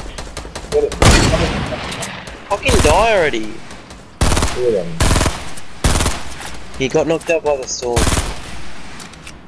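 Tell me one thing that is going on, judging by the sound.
A gun fires loud, sharp shots.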